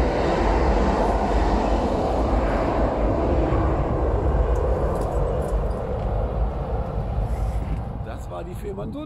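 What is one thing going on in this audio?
Wind blusters loudly across the water.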